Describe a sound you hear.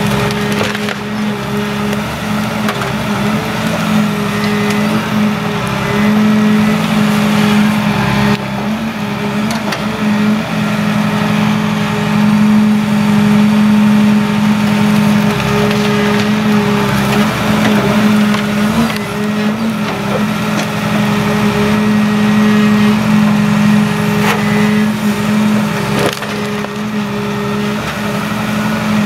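A hydraulic crane arm whines as it swings.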